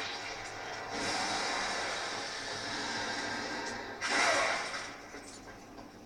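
A heavy blade slashes through thick spider webs.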